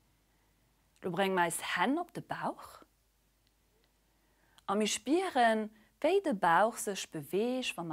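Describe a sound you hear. A young woman speaks calmly and softly into a close microphone.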